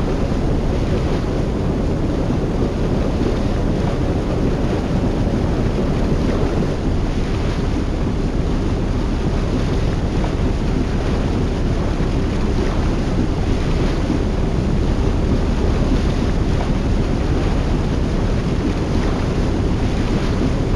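Water rushes and splashes against moving hulls.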